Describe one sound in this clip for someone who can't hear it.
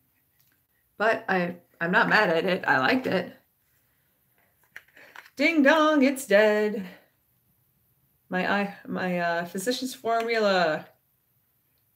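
A woman speaks calmly and close up, in short bursts with pauses.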